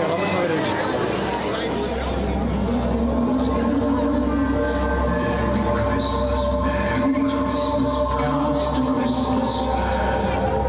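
Music plays loudly through loudspeakers outdoors.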